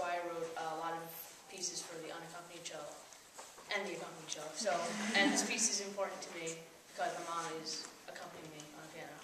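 A boy speaks calmly, close by, in an echoing room.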